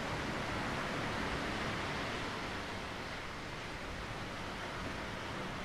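Wind blows across the shore.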